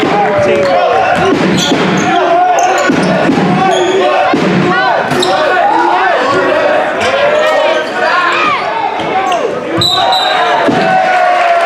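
Sneakers squeak sharply on a hard floor, over and over.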